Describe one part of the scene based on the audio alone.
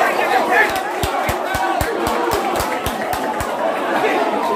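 Fans clap their hands in a steady rhythm.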